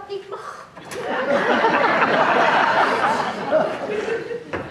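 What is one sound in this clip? An audience laughs loudly together.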